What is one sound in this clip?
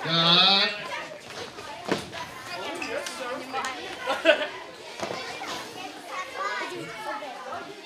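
Children chatter and call out nearby.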